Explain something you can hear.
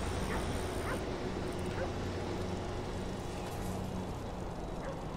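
Bicycle tyres roll over paving stones.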